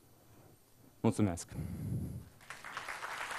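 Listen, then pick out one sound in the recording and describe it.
A man speaks briefly into a microphone in a large hall.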